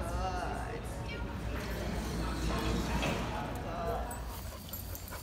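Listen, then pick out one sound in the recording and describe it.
A woman speaks calmly to dogs nearby.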